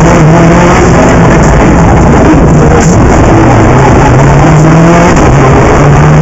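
A car engine hums steadily and changes pitch as the car drives along.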